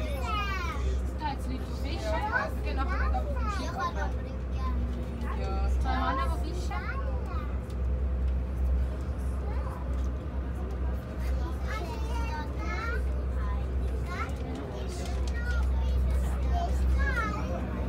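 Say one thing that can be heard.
Passengers chatter nearby.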